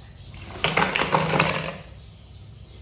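Liquid and food pour from a metal bowl into a pot.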